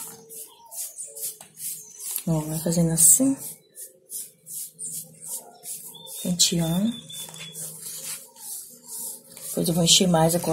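Fingers smear wet mud with soft, sticky scraping.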